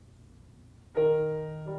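A grand piano sounds a loud, ringing chord after a long hush.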